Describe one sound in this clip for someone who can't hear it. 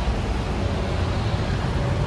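A bus drives past close by.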